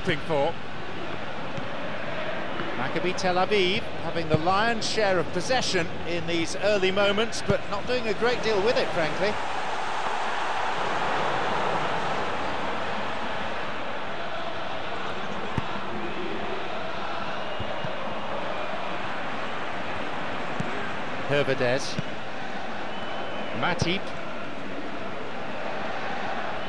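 A large stadium crowd roars steadily in the background.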